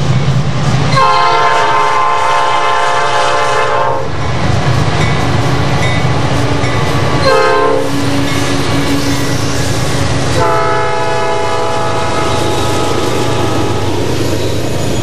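A diesel freight locomotive sounds its air horn in long blasts.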